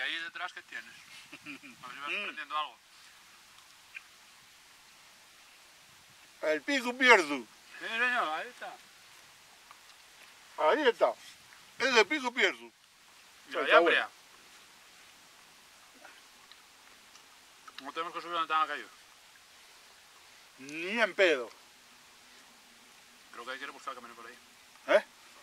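An older man talks and answers nearby, outdoors.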